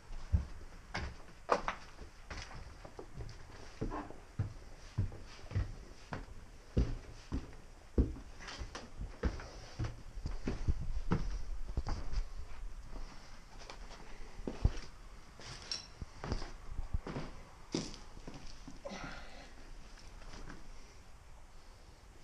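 Footsteps thud and creak on wooden stairs and floors.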